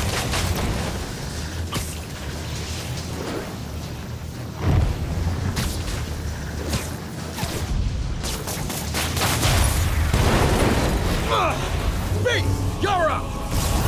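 Electricity crackles and buzzes loudly.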